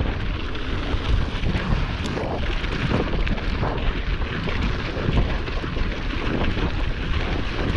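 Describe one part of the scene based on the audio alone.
Bicycle tyres crunch over packed snow.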